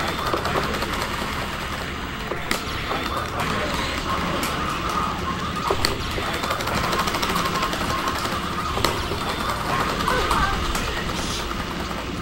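Rapid video game hit sounds crack again and again.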